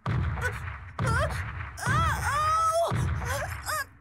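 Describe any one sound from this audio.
A young boy whimpers and cries out in fear.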